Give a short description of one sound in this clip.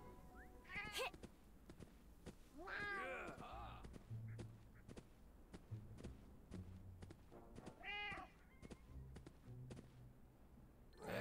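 Hooves patter quickly as a mount runs.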